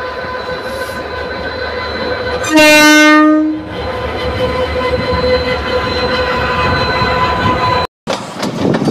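A diesel locomotive rumbles past.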